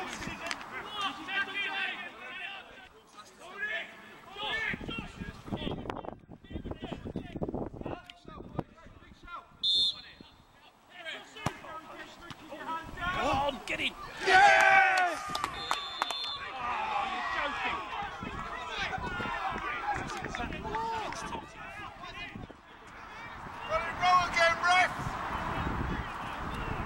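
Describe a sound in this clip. Men shout and call to each other outdoors.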